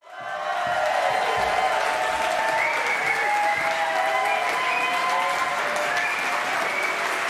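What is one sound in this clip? A women's choir sings in harmony in a large echoing hall.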